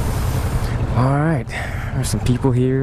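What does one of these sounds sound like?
A motorcycle engine revs up sharply and drops back.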